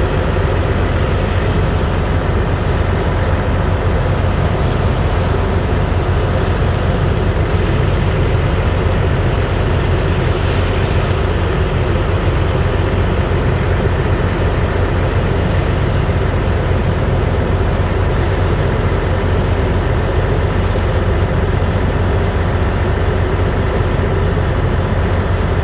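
A pump engine drones steadily.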